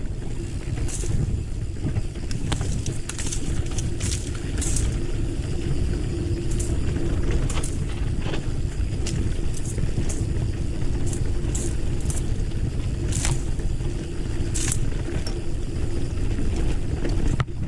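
A mountain bike rattles over loose stones.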